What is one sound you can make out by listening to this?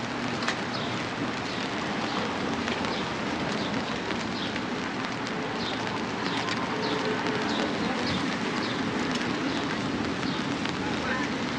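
City traffic rumbles steadily nearby outdoors.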